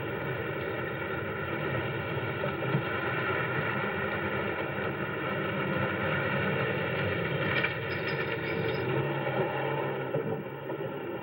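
A car engine hums as a car drives slowly over rough ground.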